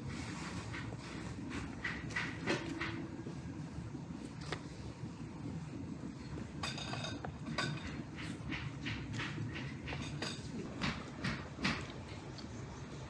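Crispy food crackles and crunches in hands.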